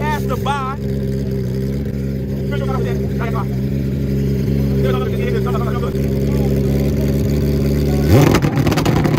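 A motorcycle engine idles loudly close by.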